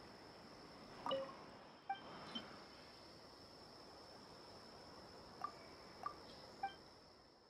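Short soft chimes ring out now and then.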